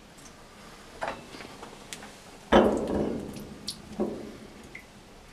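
A glass tube knocks against the side of a glass beaker.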